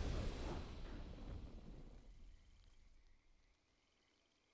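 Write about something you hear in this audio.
A triumphant game victory sound booms and then fades away.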